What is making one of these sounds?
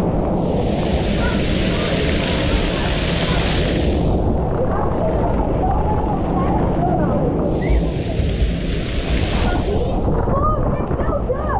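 Water sprays and splashes loudly close by.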